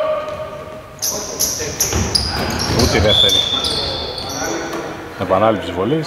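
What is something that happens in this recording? Men call out to each other across an echoing hall.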